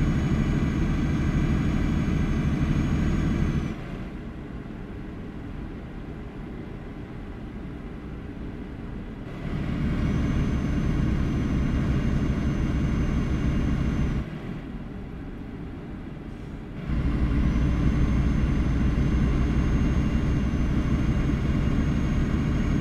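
A truck engine rumbles steadily, growing louder and quieter by turns.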